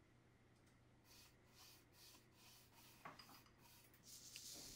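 A brush swishes across a cardboard tube.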